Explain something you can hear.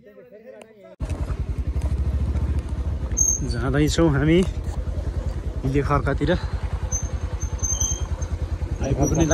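A motorbike engine runs steadily while riding over a rough road.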